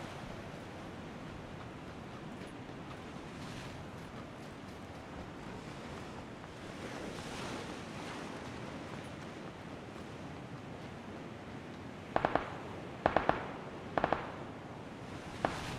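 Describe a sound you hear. Sea waves wash against rocks.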